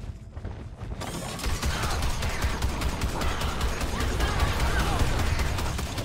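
A gun fires rapidly with loud bursts.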